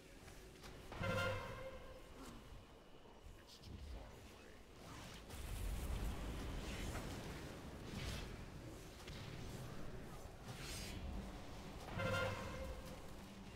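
A short warning chime rings out.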